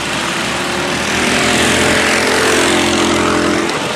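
A kart engine roars loudly as a kart passes close by.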